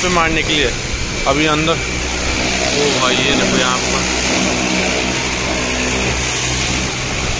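A pressure washer sprays water hard against a tyre with a steady hiss.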